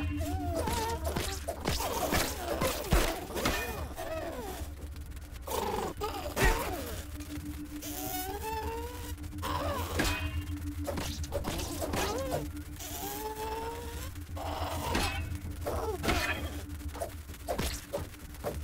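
A spear strikes an insect with sharp thwacks.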